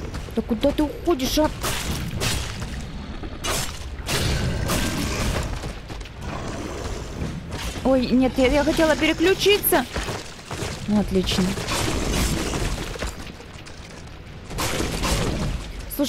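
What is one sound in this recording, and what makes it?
Blades slash and strike in a fight, with heavy thuds.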